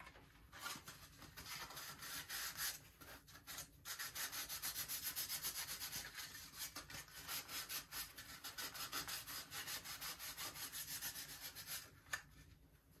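A paper towel rustles and crinkles as hands wipe with it.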